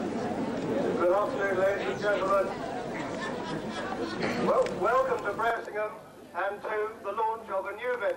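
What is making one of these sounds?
A man speaks through a loudspeaker to the crowd.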